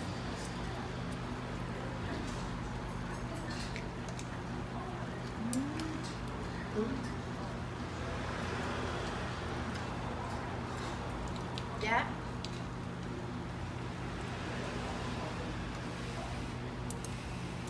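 Metal tongs and chopsticks clink against dishes.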